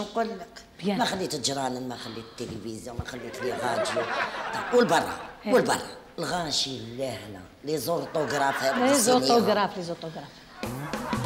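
A middle-aged woman speaks emotionally and loudly, close by.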